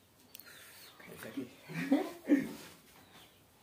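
A young woman speaks briefly up close.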